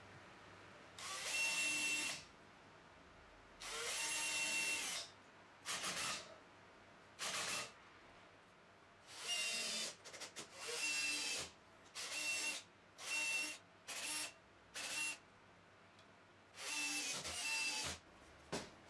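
A cordless drill whirs in short bursts, driving screws into wood.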